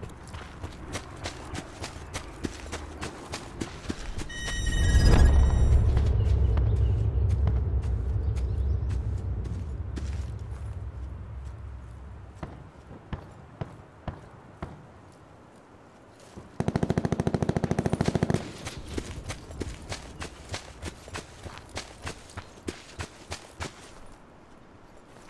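Footsteps rustle through tall grass at a steady pace.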